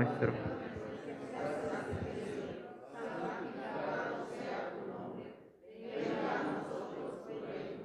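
A man speaks steadily through a microphone in a slightly echoing room.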